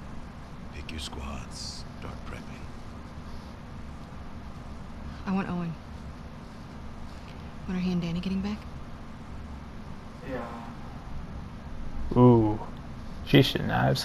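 A young man talks quietly into a microphone.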